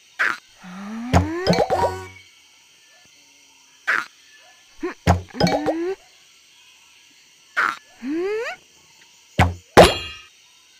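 Bubbles pop with bright chimes.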